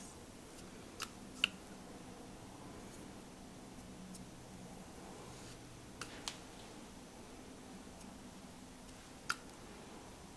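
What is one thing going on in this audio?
A spatula clicks lightly against a plastic bowl.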